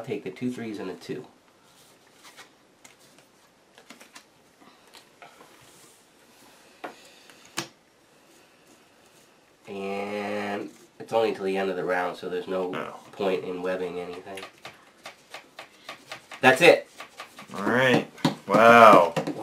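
Playing cards slide and tap softly on a felt table.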